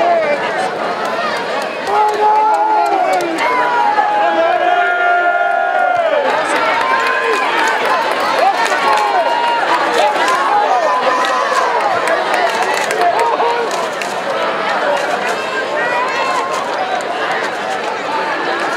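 A large crowd cheers and shouts in an open stadium.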